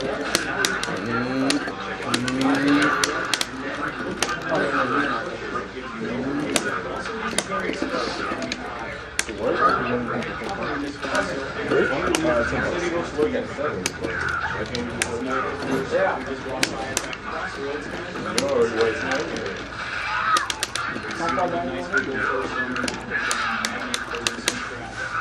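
Punches and kicks smack rapidly from a fighting video game played through a television speaker.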